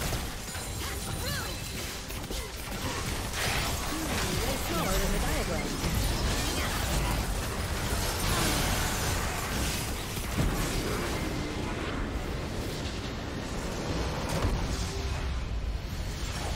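Game battle effects clash and explode continuously.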